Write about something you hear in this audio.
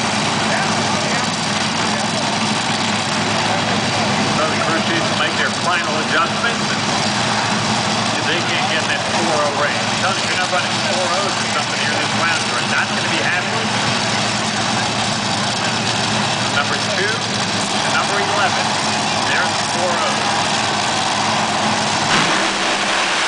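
Drag racing engines idle with a loud rumble.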